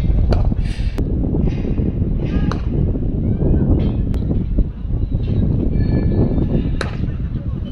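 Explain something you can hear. A cricket bat cracks sharply against a ball, several times.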